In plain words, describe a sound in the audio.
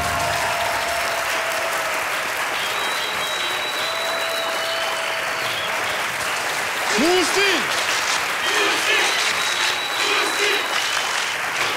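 A large studio audience cheers and claps loudly.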